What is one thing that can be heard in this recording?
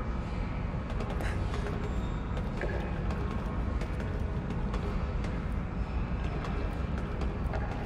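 Footsteps clank on metal stairs.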